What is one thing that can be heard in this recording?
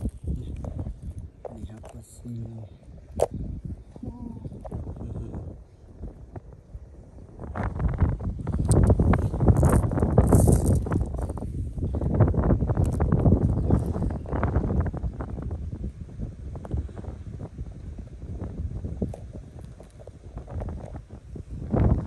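Small stones click and scrape against each other in a hand, close by.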